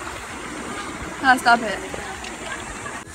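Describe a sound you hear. A girl speaks close by.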